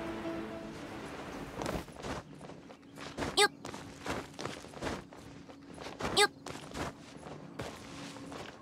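A game character's hands and feet scrape and thud while climbing rock.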